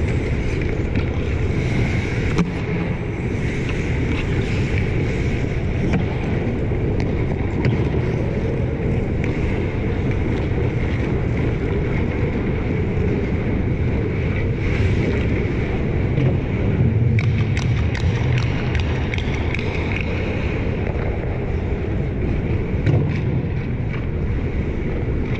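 Skates scrape and carve on ice nearby.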